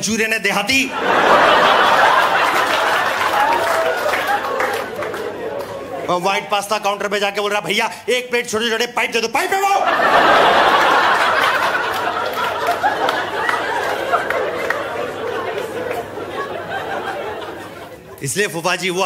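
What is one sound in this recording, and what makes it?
An audience laughs and applauds loudly.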